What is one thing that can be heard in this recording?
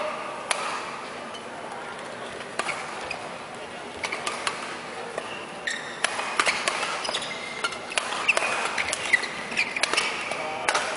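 Rackets smack a shuttlecock back and forth in a quick rally.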